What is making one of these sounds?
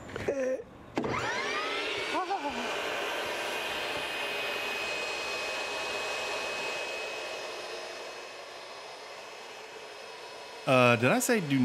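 A table saw spins up and whines steadily.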